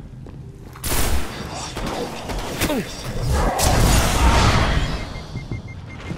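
A heavy blast booms and crackles.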